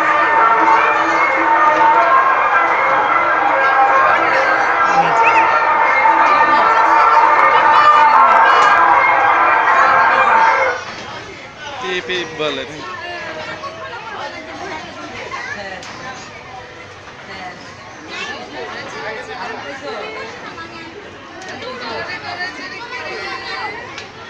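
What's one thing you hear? A carousel rumbles as it turns.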